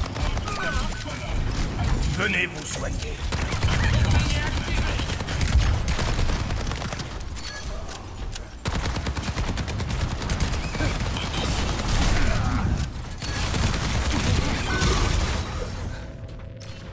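A rapid-fire gun shoots in bursts with loud, crackling blasts.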